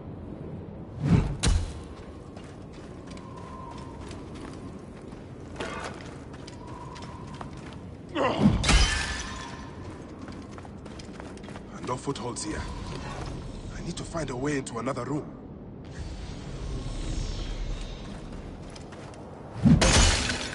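A heavy mace swings and thuds into a body.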